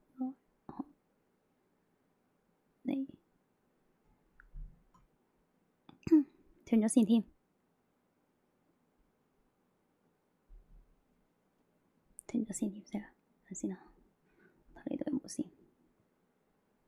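A young woman speaks calmly and closely into a microphone, in short bursts with pauses.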